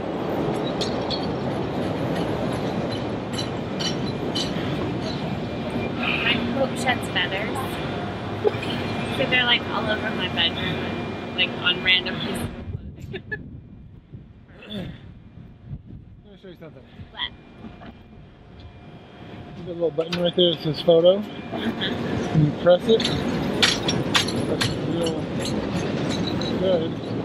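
A train rumbles and clatters past nearby.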